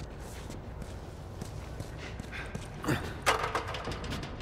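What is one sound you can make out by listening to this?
A metal ladder clangs down onto a hard surface.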